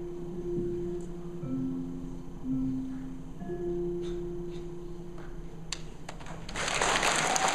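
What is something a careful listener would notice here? An electronic keyboard plays a few slow notes.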